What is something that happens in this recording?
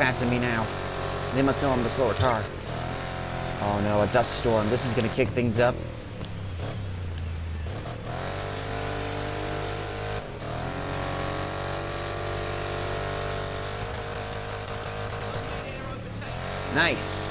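A racing truck engine roars and revs up and down.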